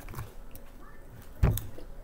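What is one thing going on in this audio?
A young woman chews food with her mouth close by.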